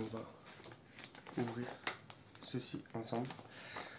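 A paper parcel rustles in a man's hands.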